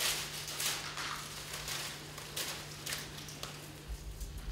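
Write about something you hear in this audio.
Dry leaves on a branch rustle as it is shaken.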